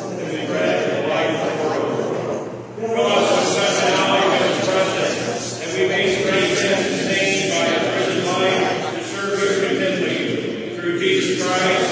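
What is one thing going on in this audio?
An elderly man chants aloud at a distance in a large echoing room.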